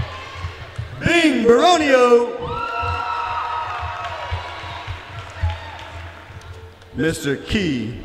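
Young women cheer and shout with excitement.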